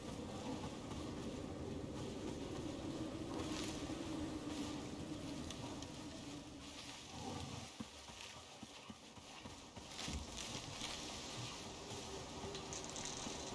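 Footsteps rustle through grass and bushes.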